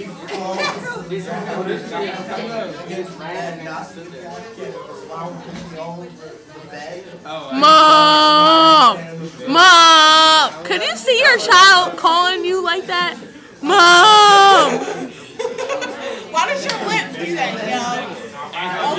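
Young women talk and giggle close by.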